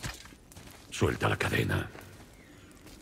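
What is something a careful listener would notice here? A man speaks in a deep, gruff voice.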